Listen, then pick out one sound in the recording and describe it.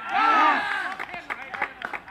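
Young men shout and cheer across an outdoor field.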